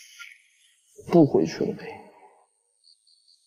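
A young man speaks softly close by.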